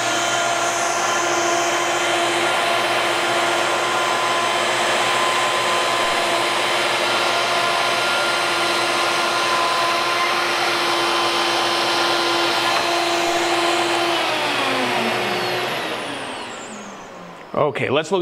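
A router motor whines loudly and steadily, then winds down.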